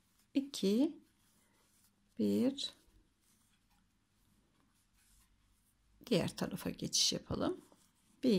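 Yarn rustles softly as a crochet hook pulls loops through it.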